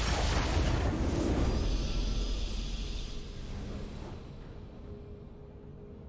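A victory fanfare swells.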